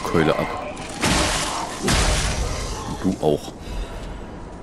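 Wooden crates smash and splinter.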